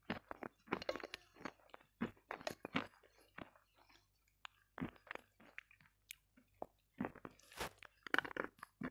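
A young woman chews and smacks food close to a microphone.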